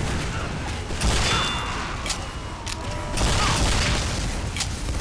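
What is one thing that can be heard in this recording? Rockets explode with loud booms.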